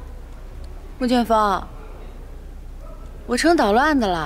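A young woman speaks close by, with an indignant, questioning tone.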